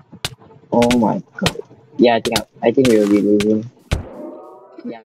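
Sword hits land in a video game fight.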